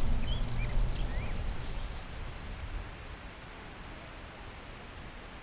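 Wind blows through grass outdoors, gusting and then easing.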